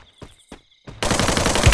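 A rifle fires a rapid burst in a video game.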